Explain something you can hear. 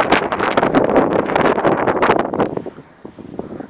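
Strong wind blusters against the microphone outdoors.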